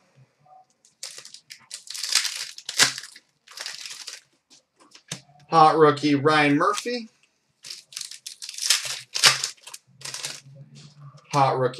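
Foil card wrappers crinkle and rustle.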